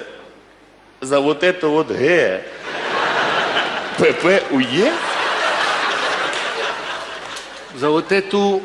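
A second man answers with animation through a microphone.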